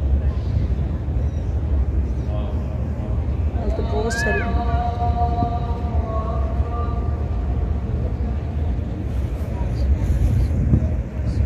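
A crowd of people murmurs softly in the distance.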